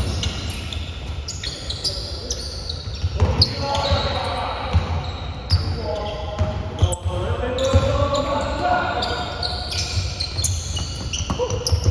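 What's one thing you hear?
A basketball thumps on the court.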